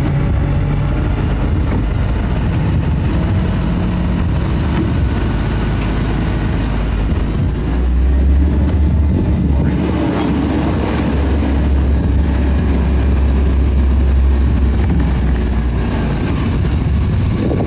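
A crane engine hums steadily nearby.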